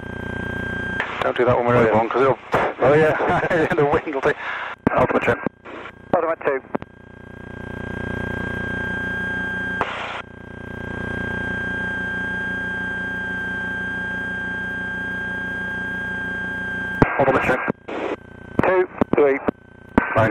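A man speaks with animation over an intercom headset.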